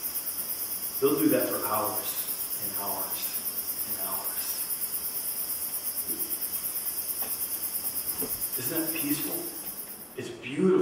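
A middle-aged man speaks calmly into a microphone, heard through a loudspeaker in a room.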